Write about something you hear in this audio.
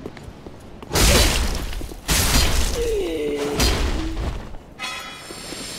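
Heavy sword blows slam into armour with loud metallic impacts.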